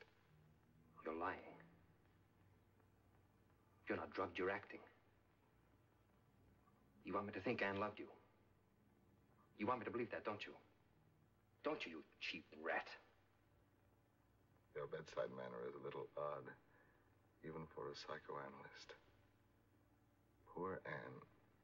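A man speaks slowly and weakly in short phrases with long pauses.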